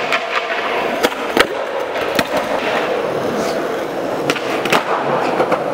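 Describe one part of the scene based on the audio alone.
A skateboard clacks sharply as it flips and lands.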